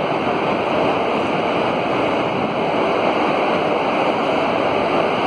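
A train rolls slowly past with a steady rumble and rattle.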